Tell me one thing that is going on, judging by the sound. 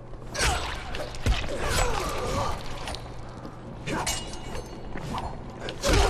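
A man grunts and yells while fighting.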